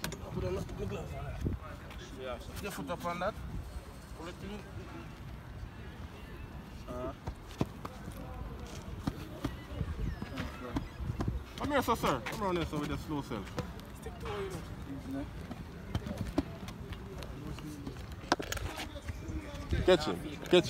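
A young man speaks casually nearby, outdoors.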